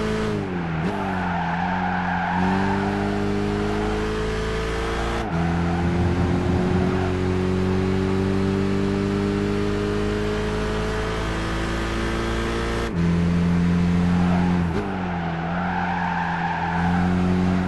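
Tyres screech through the corners.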